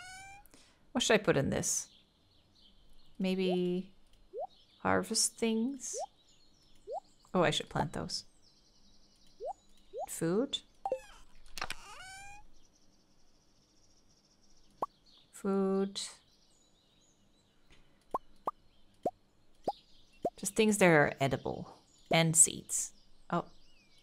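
A young woman talks into a close microphone with animation, in short bursts.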